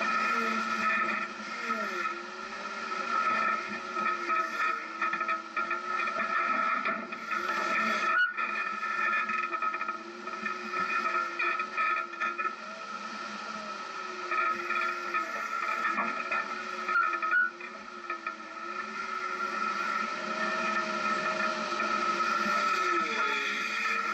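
An off-road vehicle's engine hums and revs.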